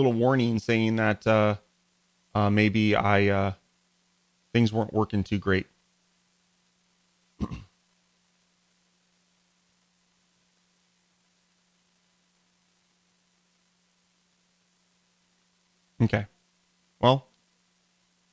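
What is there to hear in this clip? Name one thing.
A man talks calmly and close into a microphone, in short bursts with pauses.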